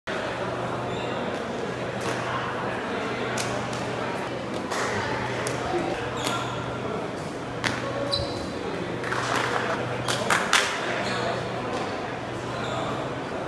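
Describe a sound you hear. A crowd of players and onlookers chatters in a large echoing hall.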